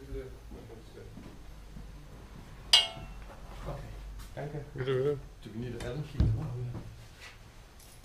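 A metal bicycle frame clanks and knocks as it is handled.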